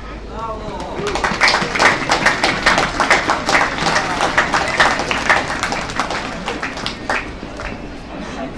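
A small crowd claps and applauds.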